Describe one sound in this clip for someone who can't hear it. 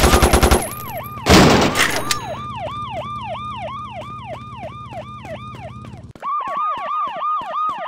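A police siren wails in a rapid, repeating rise and fall.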